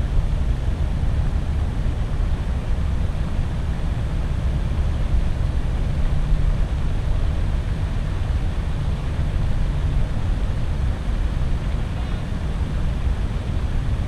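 Wind buffets the microphone outdoors with a steady low rumble.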